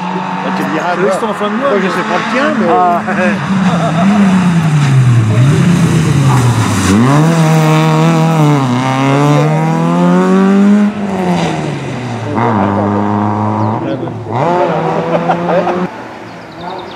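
A rally car's engine revs hard, rising and falling in pitch as it shifts gears.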